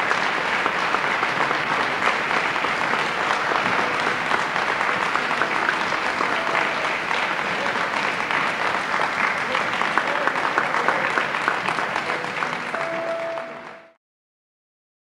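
A large audience applauds loudly.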